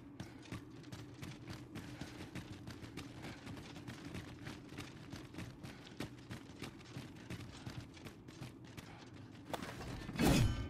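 Footsteps crunch steadily on rocky ground.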